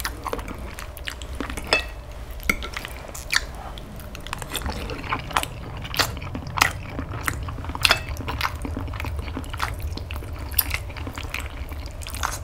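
Metal cutlery clicks and scrapes against a plate.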